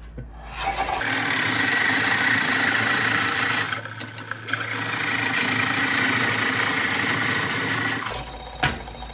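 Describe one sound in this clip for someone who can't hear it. A lathe chisel scrapes loudly against spinning wood.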